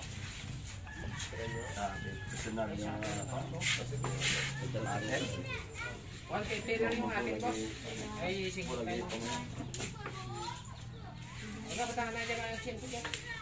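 Men talk with animation close by.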